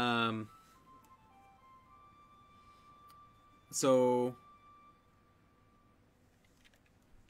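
A flute plays a soft, slow melody.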